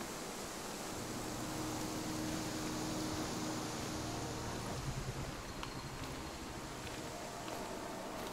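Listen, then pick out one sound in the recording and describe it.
Footsteps crunch slowly over leaves and twigs.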